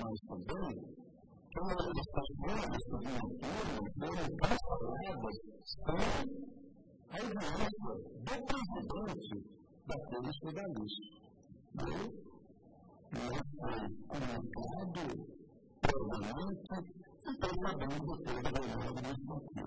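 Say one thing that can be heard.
An elderly man speaks calmly and deliberately into a microphone.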